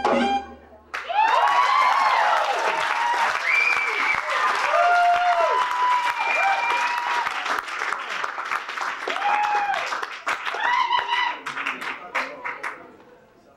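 A saxophone plays a winding melody live.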